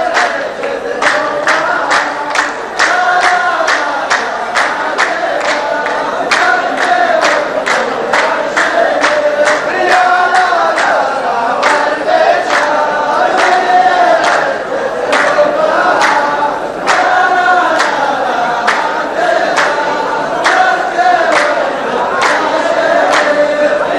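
A group of men chants together in unison, loud and close.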